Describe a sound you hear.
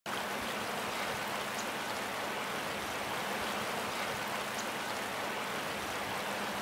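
Water flows and ripples gently in a shallow stream.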